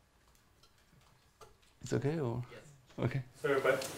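A man laughs briefly.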